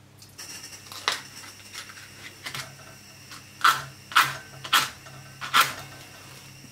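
A gas stove igniter clicks several times.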